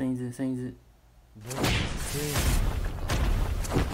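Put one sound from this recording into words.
Blades swish and clash sharply.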